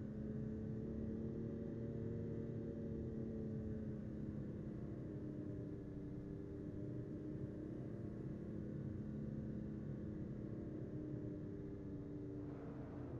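Tyres roll on a smooth road.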